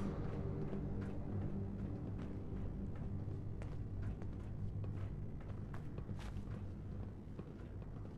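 Footsteps thud and crunch on a debris-strewn floor.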